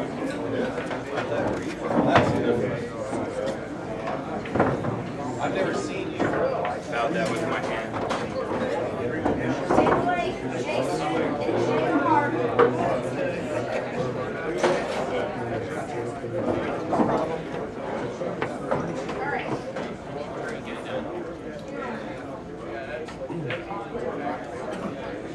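A crowd of people chatters throughout a busy room.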